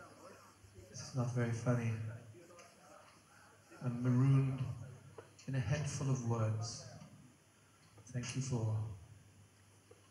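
A woman sings slow, drawn-out phrases through a microphone in a large echoing hall.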